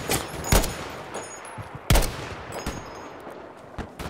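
A rifle bolt clicks as it is reloaded.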